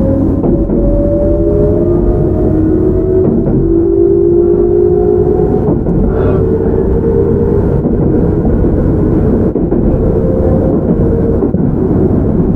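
A train's motor whines with a slowly rising hum.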